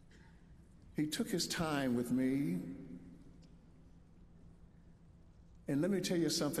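An elderly man speaks slowly and expressively into a microphone.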